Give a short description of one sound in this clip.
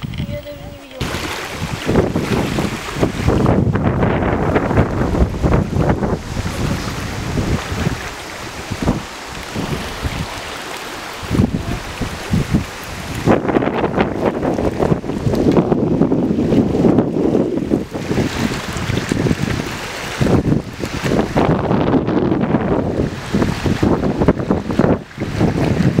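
Small waves splash and lap against a rocky shore.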